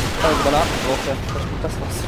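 Gunshots crack from a pistol.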